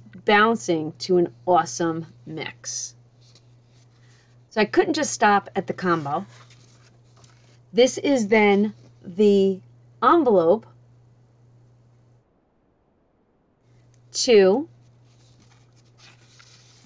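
Sheets of paper rustle as they are handled.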